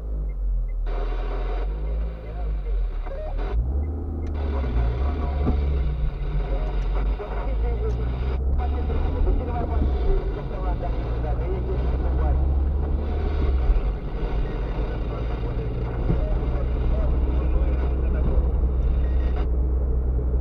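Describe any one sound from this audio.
Tyres roll over the road.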